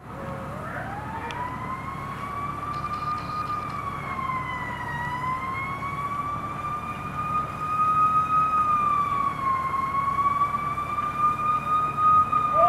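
A fire roars and crackles steadily outdoors.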